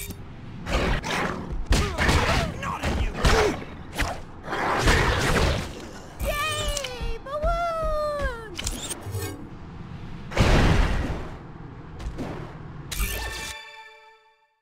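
Heavy thuds and whooshes of a fight sound in quick succession.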